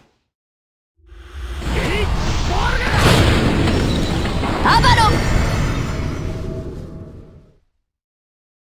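Magic blasts explode with a heavy rumble.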